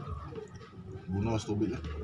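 Water pours from a jug into a glass.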